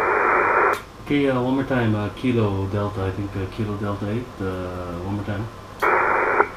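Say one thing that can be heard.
A man speaks calmly and close by into a microphone.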